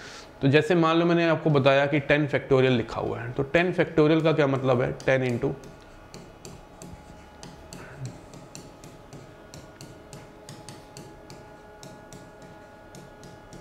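A pen taps softly on a writing board.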